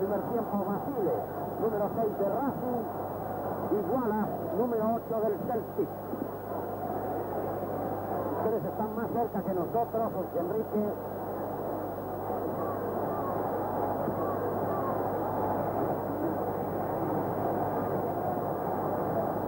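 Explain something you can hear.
A large stadium crowd roars and murmurs steadily outdoors.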